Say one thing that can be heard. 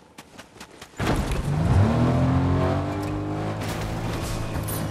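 A car engine starts up and revs with a rising roar.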